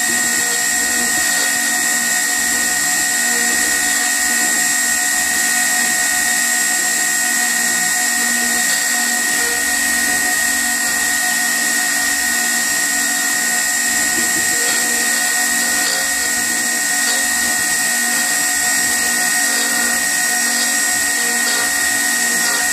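A router motor whines steadily as bits carve wood.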